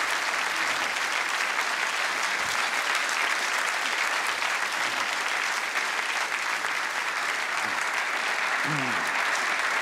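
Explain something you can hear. A large studio audience applauds steadily in a big hall.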